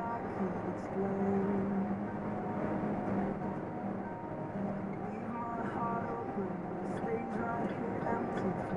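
Tyres roar steadily on the highway.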